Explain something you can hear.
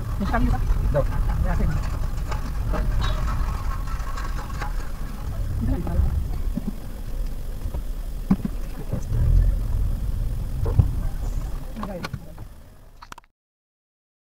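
A car rumbles and bumps over an uneven road surface.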